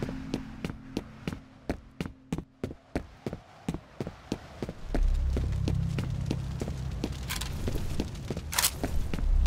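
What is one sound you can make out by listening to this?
Footsteps tread steadily on hard ground.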